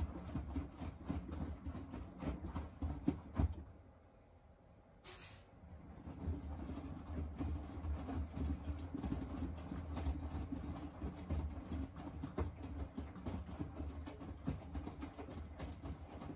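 A washing machine motor hums steadily.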